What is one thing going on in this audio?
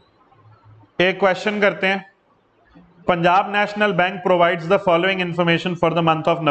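A man speaks calmly and clearly into a close microphone, explaining.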